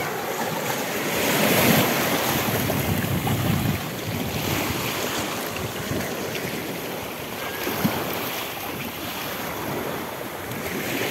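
Small waves wash onto a rocky shore and fizz as they draw back.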